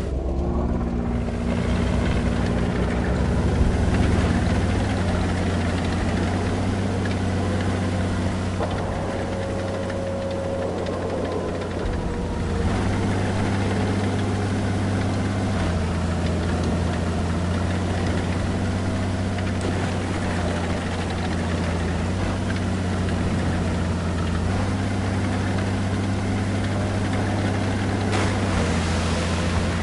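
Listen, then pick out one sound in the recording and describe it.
A tank engine rumbles steadily, its pitch rising and falling as it drives.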